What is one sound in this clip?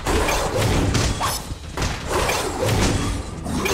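A magical blast whooshes and explodes.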